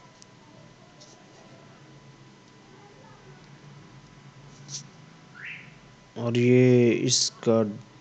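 Cloth rustles as a fabric is unfolded and spread out.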